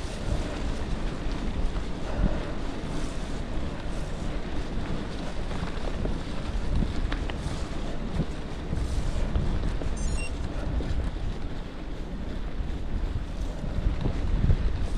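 Wind rumbles against the rider outdoors.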